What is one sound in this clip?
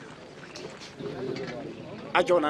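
A man speaks firmly close by.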